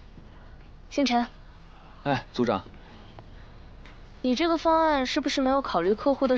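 A young woman speaks questioningly to a young man nearby.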